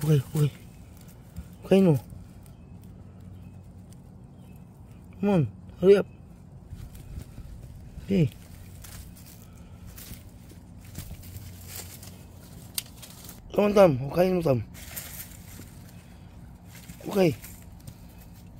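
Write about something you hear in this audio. A dog scratches and digs at loose soil with its paws.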